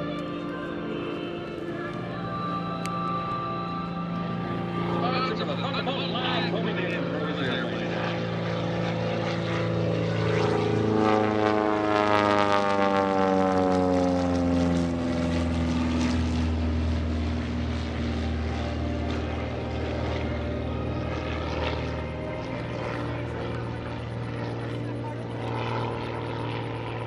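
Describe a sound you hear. A small propeller plane's engine roars close by, its pitch falling as the plane passes and fades away.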